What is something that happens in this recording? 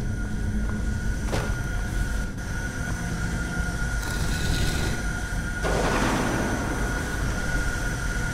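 A magical beam of light hums steadily.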